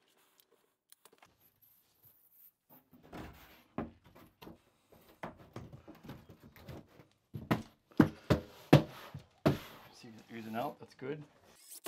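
A large board knocks and scrapes against a wall.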